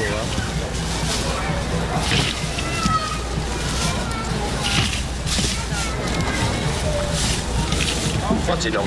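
A crowd of men and women chatters loudly all around.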